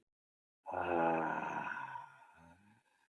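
A man sings out a drawn-out, wavering note close to a microphone.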